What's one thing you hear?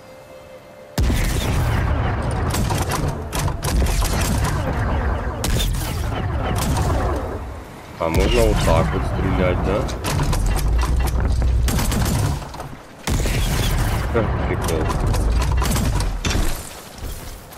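Energy blasts crackle and boom loudly.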